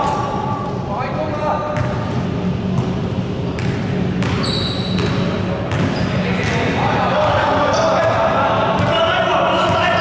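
A basketball bounces on a wooden court in an echoing gym.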